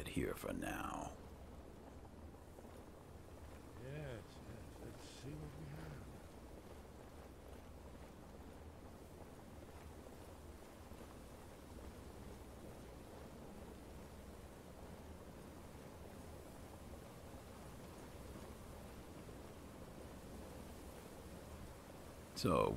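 A torch flame crackles and hisses softly.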